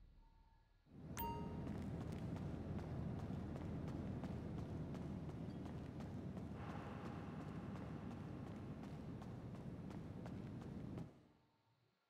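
Footsteps thud along a hard floor.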